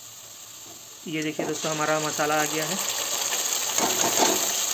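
Liquid pours into a hot wok.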